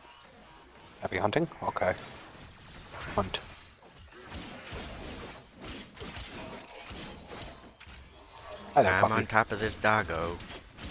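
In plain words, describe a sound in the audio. Blades slash and clang in quick bursts of combat.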